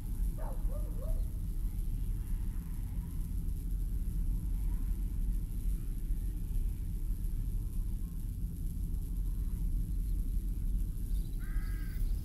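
Wind blows steadily and low through trees outdoors.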